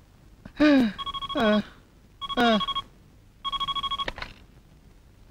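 A telephone rings with a shrill electronic trill.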